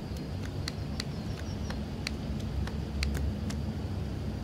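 Balls slap into a hand as a man juggles.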